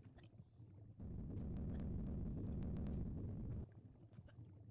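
A huge boulder rolls and rumbles loudly down a stone passage.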